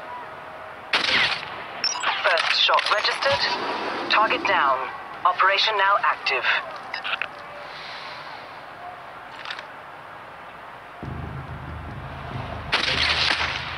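A rifle shot cracks loudly.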